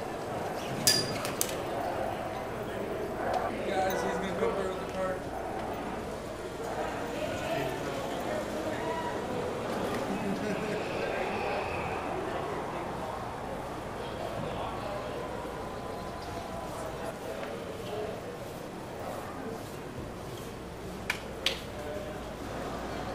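Footsteps shuffle past at close range.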